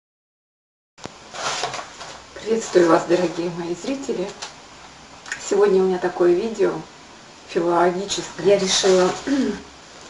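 A woman speaks calmly and cheerfully close to a microphone.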